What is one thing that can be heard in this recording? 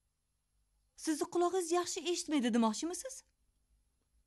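A middle-aged woman speaks firmly, close by.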